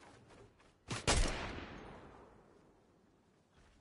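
A gunshot cracks and echoes away.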